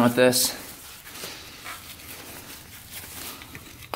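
A cloth rubs against metal.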